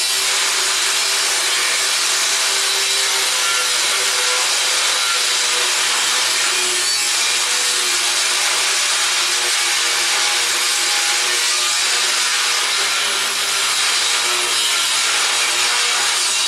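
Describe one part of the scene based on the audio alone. A power grinder whines steadily against metal.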